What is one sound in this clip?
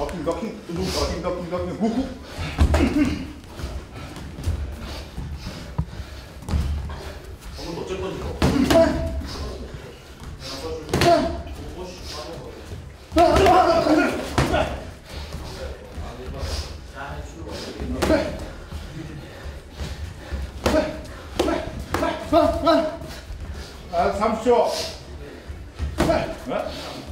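Sneakers shuffle and squeak on a padded floor.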